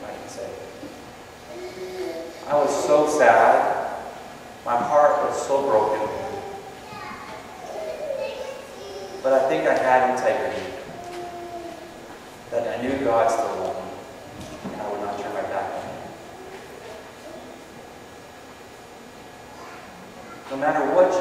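A middle-aged man speaks calmly through a microphone in a room with some echo.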